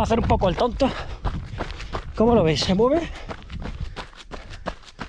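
Running footsteps crunch on a dirt trail.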